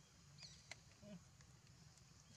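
A monkey gives a short call close by.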